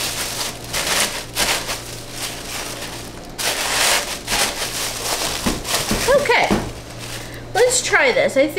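Packing paper rustles and crinkles as it is folded.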